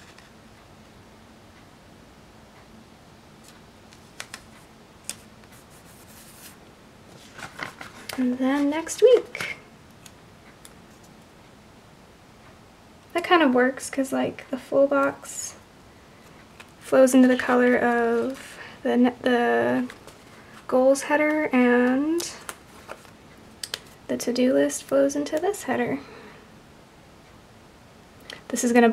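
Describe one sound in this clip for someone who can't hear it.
Sticker paper rustles softly as stickers are peeled and pressed down.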